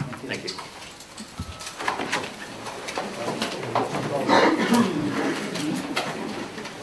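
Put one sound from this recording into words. A middle-aged man speaks calmly into microphones.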